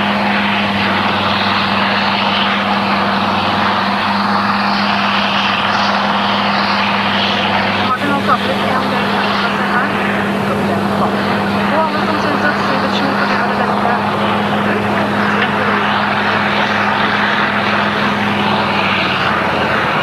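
A vehicle engine drones steadily, heard from inside the cab.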